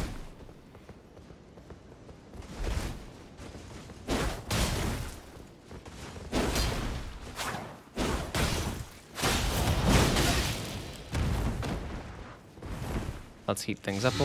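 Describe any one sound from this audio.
Blades whoosh through the air.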